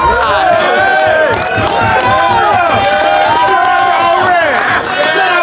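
A crowd of men cheers and shouts.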